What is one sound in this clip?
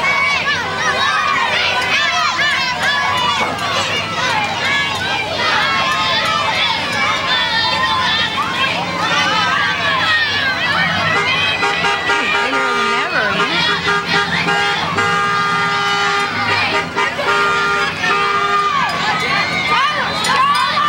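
A crowd of children and adults cheers and shouts outdoors.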